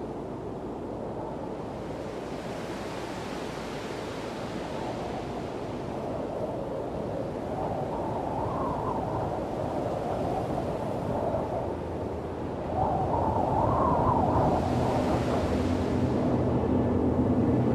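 Wind howls through a snowstorm and grows stronger.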